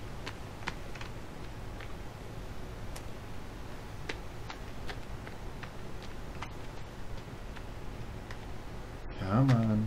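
Footsteps rustle quickly through grass and undergrowth.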